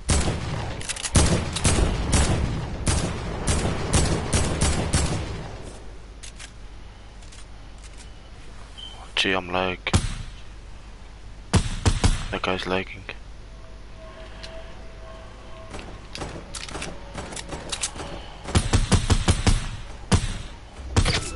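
Rapid gunfire cracks in quick bursts.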